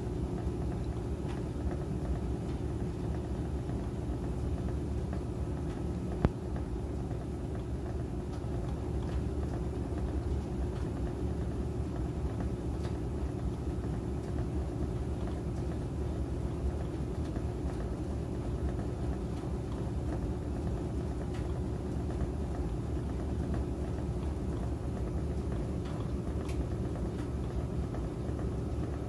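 A washing machine drum spins with a steady low hum and rumble.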